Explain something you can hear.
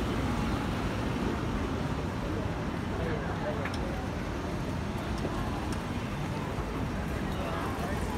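A truck engine rumbles nearby as it drives past.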